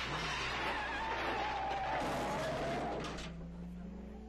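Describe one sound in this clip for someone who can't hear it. Car tyres screech on the road.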